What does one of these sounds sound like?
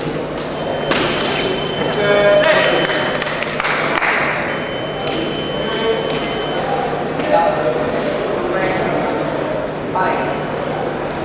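A man calls out commands loudly.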